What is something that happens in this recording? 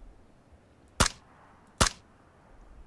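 A rifle fires two sharp, loud shots.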